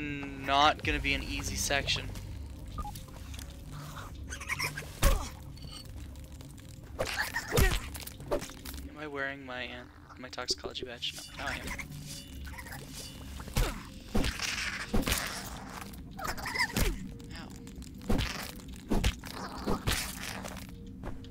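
A weapon swings and strikes with sharp thuds.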